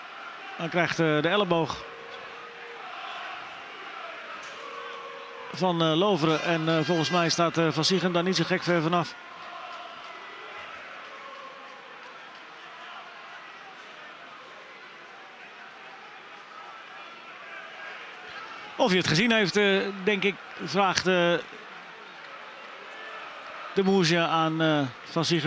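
A crowd murmurs steadily in a large stadium.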